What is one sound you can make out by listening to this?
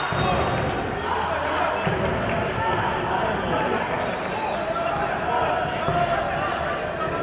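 Men shout to each other across a football pitch.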